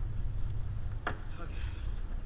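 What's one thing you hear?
A fishing line clacks against a metal boat rail.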